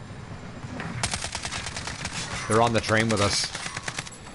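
Gunfire rattles in quick bursts.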